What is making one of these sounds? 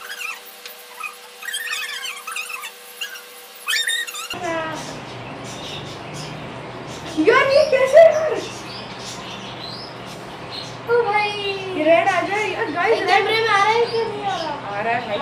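Two young boys talk and laugh excitedly close by.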